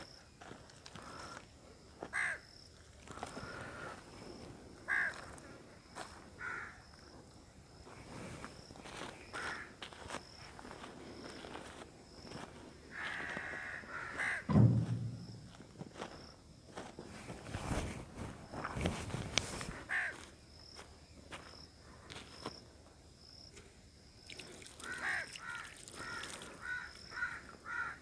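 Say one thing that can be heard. Water pours from a jug onto soil.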